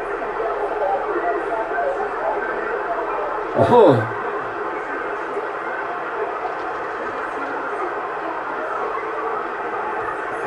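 Static hisses and crackles steadily from a radio receiver.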